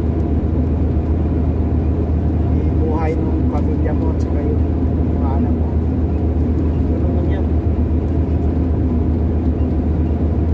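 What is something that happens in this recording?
A small aircraft engine drones steadily and loudly.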